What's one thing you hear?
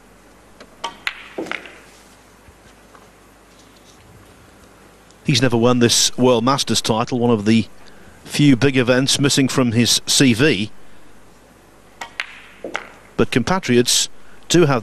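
Billiard balls knock together with hard clacks.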